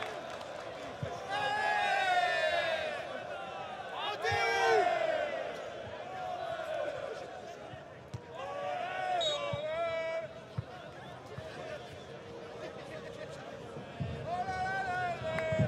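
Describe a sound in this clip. A crowd sings and chants in a large open stadium.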